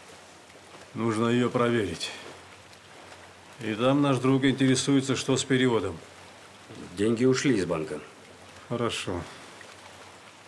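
An older man speaks firmly and close by.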